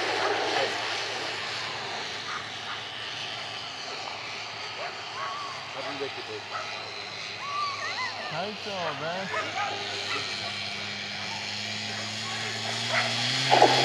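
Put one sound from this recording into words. Greyhounds race past, their paws thudding on the sand track.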